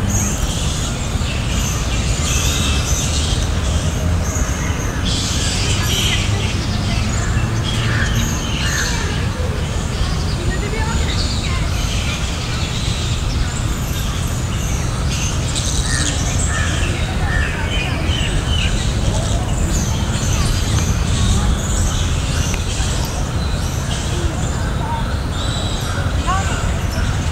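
Wind blows steadily outdoors through tall trees.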